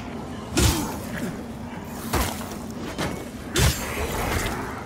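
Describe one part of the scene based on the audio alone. Sword blows strike hard with heavy thuds.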